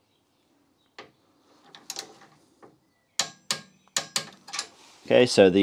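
A ratchet wrench clicks against a metal bolt.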